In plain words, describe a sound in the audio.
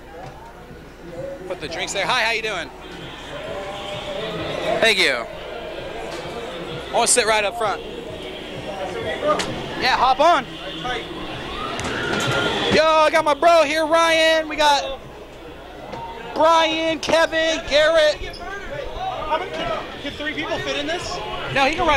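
A fairground ride rattles and rumbles.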